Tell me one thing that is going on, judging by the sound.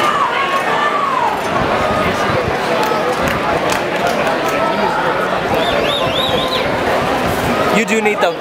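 A large stadium crowd murmurs and chatters all around.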